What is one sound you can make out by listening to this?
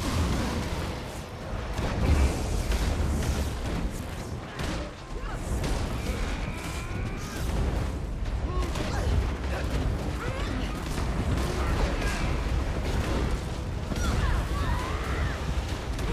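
Weapons clash and strike repeatedly.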